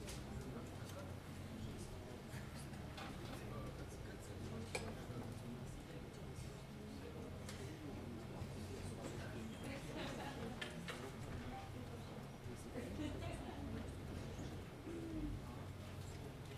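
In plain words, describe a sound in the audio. A saxophone plays a melody.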